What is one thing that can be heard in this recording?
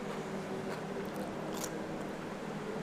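A woman crunches on a raw vegetable while chewing.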